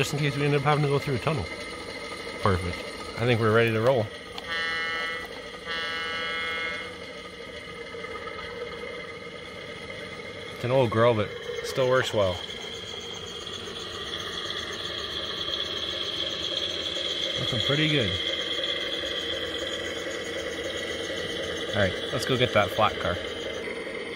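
A model diesel locomotive sounds its horn in several short blasts.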